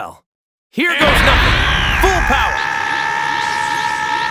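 A powerful energy surge roars and hums loudly.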